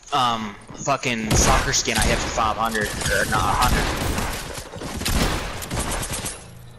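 Shotgun blasts ring out in quick bursts.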